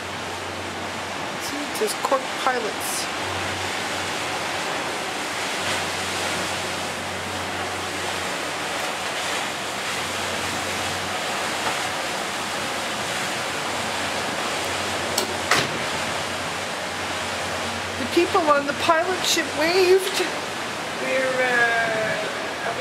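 Water rushes and splashes against a speeding boat's hull.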